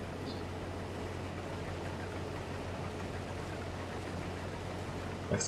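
A combine harvester cuts and threshes crops with a rustling whir.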